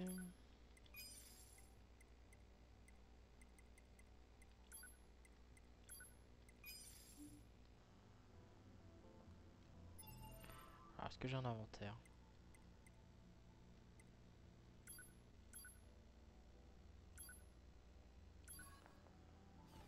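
Short electronic menu clicks and beeps sound as selections are made.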